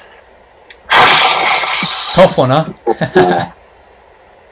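A young man laughs over an online call.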